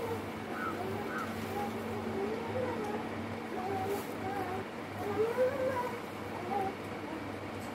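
A parrot chirps and warbles softly.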